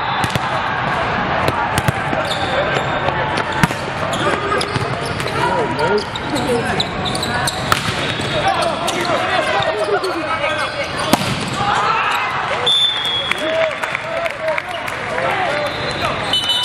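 A crowd of young players and spectators chatter and call out.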